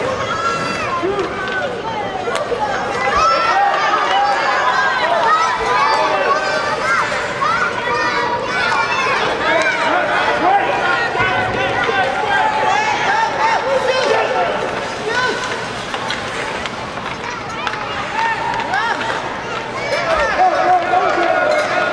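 Young children shout and call out across a large echoing arena.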